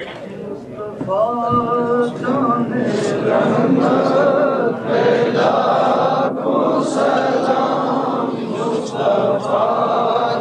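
Men's voices chant loudly together in unison.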